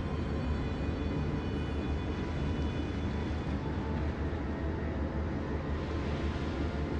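Water rushes and splashes around a ship's hull.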